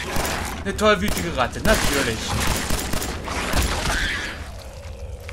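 Gunshots fire rapidly and loudly.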